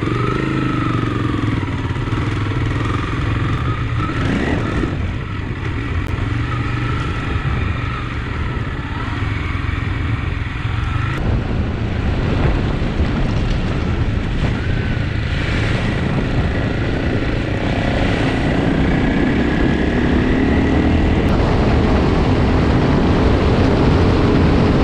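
A motorcycle engine hums steadily close by.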